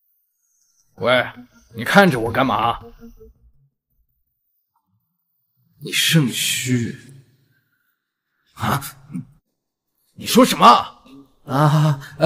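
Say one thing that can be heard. A man speaks sharply and questioningly, close by.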